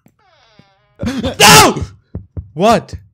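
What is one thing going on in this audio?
A man exclaims loudly and with animation close to a microphone.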